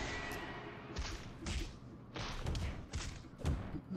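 Punches and blows land with heavy thuds, again and again.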